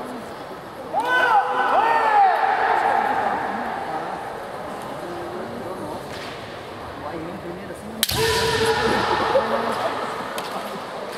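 Fighters shout loudly in a large echoing hall.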